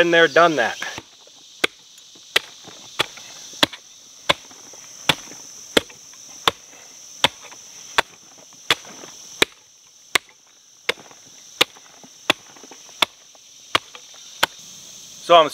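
A pick strikes hard earth with sharp rhythmic chops.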